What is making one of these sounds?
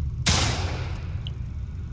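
A gunshot bangs loudly and echoes away.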